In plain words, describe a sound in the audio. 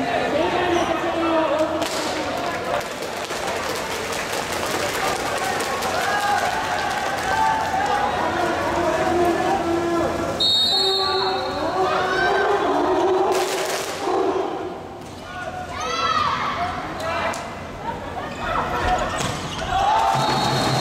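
A crowd cheers and chants loudly in a large echoing hall.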